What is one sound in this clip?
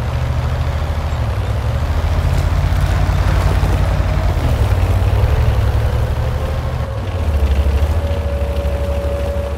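A heavy tank engine rumbles steadily as the tank drives.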